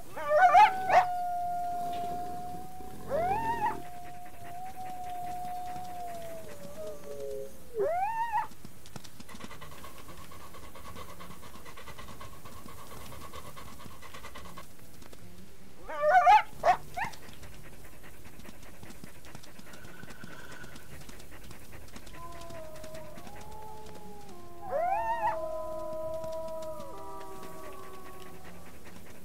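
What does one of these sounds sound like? An animal's paws patter softly over grass as it runs.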